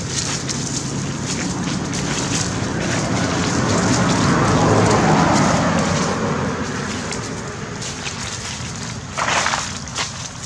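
Dry leaves rustle and crunch as a monkey walks over them.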